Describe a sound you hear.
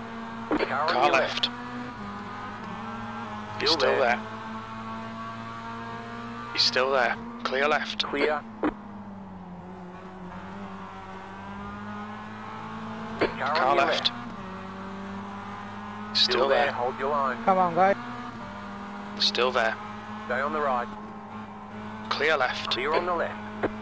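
A racing car engine drones steadily, shifting pitch as gears change.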